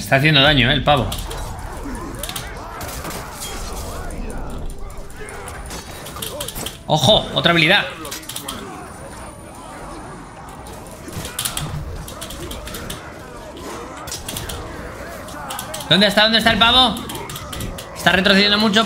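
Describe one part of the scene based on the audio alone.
Swords clash and thud in a game battle.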